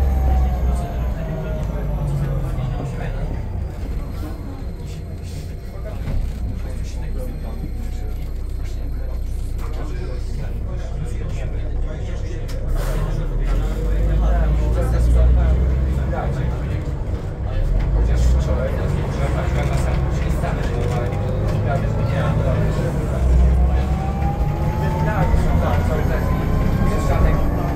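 A bus engine rumbles low and steadily from inside the bus.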